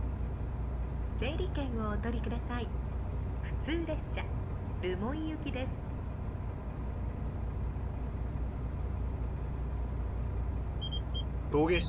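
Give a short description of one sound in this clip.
A train engine idles with a low, steady hum.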